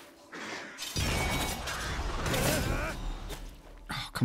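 Blades swoosh and clash in a fast fight.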